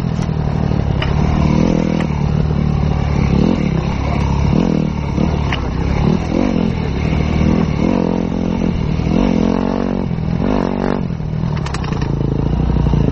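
A motorcycle engine revs up and down loudly.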